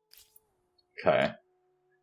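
A young man speaks briefly and close to a microphone.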